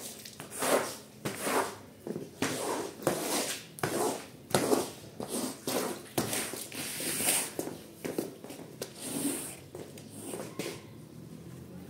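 A squeegee swishes over a wet stone floor in quick strokes.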